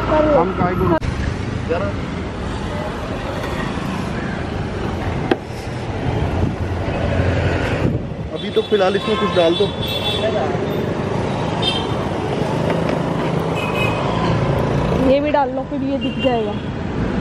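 Traffic hums and motorbikes pass by outdoors.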